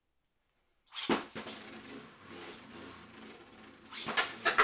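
A spinning top whirs and rattles across a plastic arena.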